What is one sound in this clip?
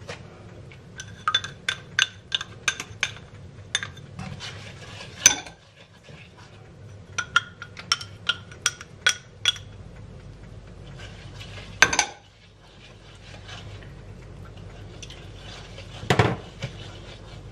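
A spatula taps and clinks against a pan.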